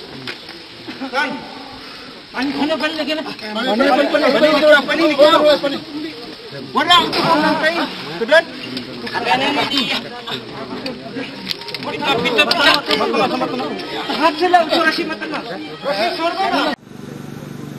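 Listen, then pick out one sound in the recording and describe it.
Men talk and call out to each other nearby.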